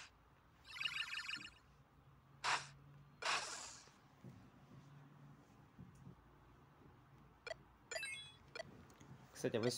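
Chiming, whooshing video game effects play as blows land.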